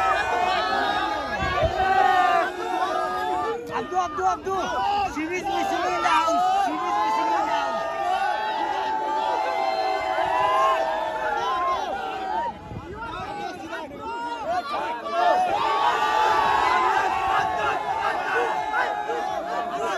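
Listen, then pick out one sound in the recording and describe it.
A crowd of fans cheers and screams excitedly close by.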